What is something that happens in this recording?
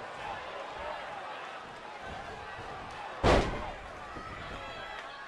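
A large crowd murmurs and cheers in a big arena.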